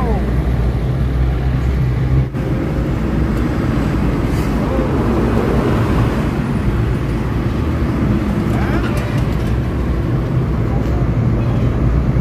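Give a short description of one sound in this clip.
A small petrol van drives along a highway, its engine and road noise heard from inside.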